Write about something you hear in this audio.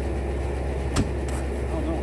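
A bean bag thumps against a wooden board.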